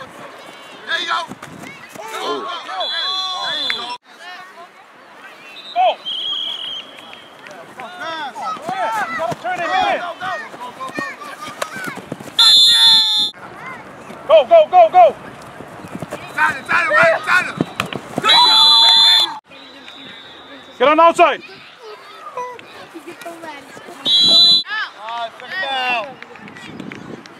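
Children shout and cheer outdoors during a game.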